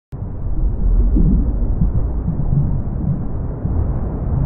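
Water churns and splashes close by.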